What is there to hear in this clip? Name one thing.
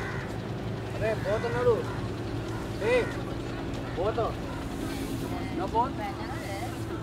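Young men and women talk loudly as they walk closer.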